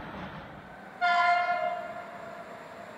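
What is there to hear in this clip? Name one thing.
A train horn sounds a short blast in the distance.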